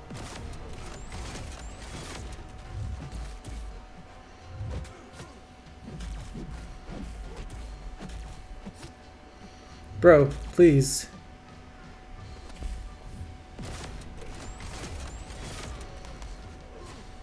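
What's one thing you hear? Punches and blasts from a fighting game thud and crackle in quick succession.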